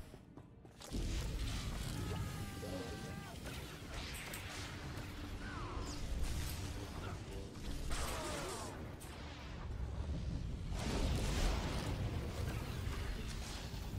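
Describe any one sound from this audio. Electric lightning crackles and buzzes.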